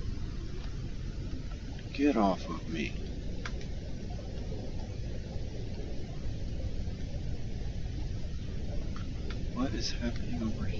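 A low underwater rumble drones steadily.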